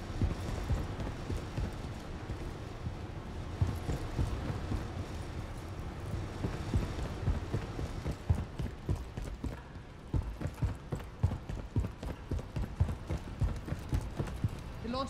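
Quick heavy footsteps thud on a hard floor.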